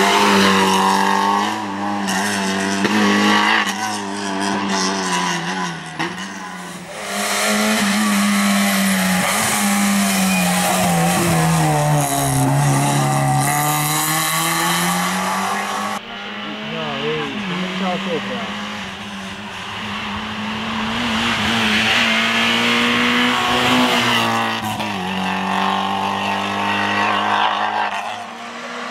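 A rally car engine roars and revs hard as the car races along a winding road.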